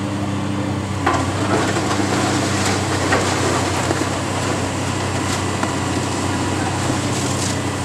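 Masonry and debris crack and crash as a demolition claw tears at a roof.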